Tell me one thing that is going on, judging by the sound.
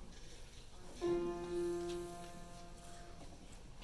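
A piano plays a short chord.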